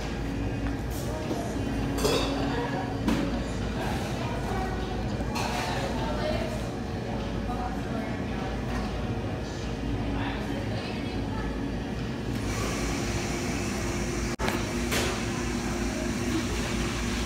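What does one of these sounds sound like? A crowd of people chatters indoors in the background.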